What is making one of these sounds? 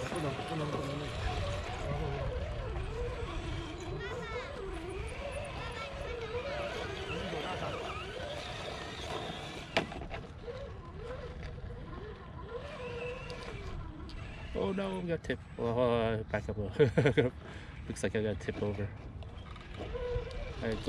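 Rubber tyres scrape and crunch on rock.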